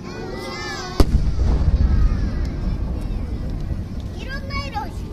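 A deep rumble rolls out after the fireworks' bangs and slowly fades.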